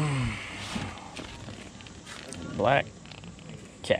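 Plastic packaging crinkles in a hand.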